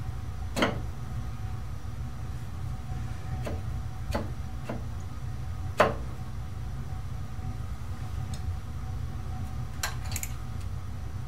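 Metal tools click and clank.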